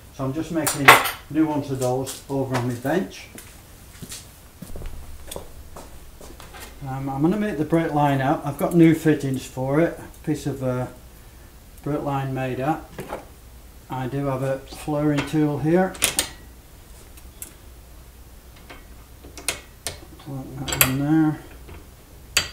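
An elderly man talks calmly and closely, as if explaining.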